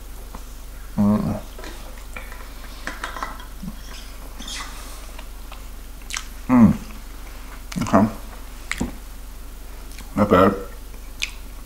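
A young man bites and chews soft pastry.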